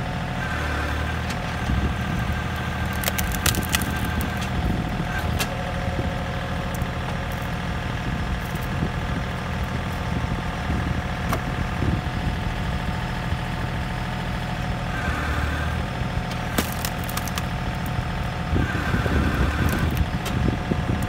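A log splitter's hydraulics whine as the ram pushes down.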